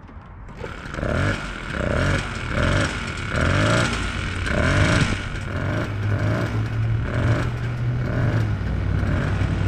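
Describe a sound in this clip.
A small moped engine sputters and catches in quick bursts.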